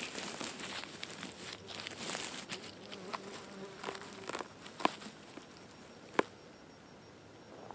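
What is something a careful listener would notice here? Fingers rustle through dry moss and pine needles.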